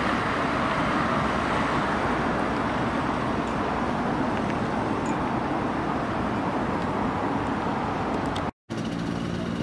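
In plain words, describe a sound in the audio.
A car drives past on a road.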